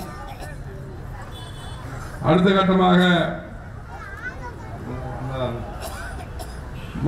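A man speaks forcefully into a microphone, heard through loudspeakers outdoors.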